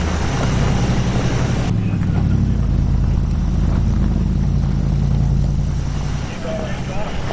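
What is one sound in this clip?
A car engine rumbles steadily from inside a moving vehicle.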